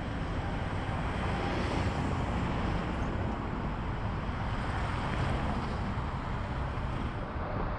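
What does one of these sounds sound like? Cars pass by on the road with tyre noise.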